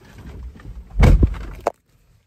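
A hand brushes close against the microphone with a loud rustling thump.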